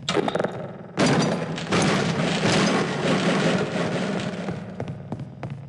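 A wooden crate is smashed apart with a wrench.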